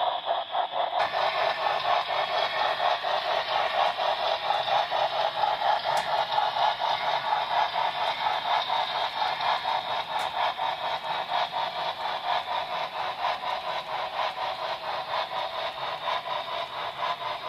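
Small train wheels click and rumble along a track.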